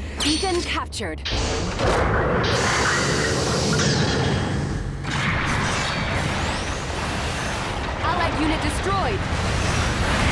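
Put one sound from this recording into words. A large machine's engines rumble and whoosh.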